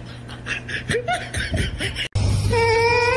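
A cat meows loudly up close.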